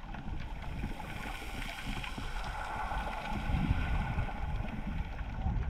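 Water swishes and rumbles, muffled as if heard underwater.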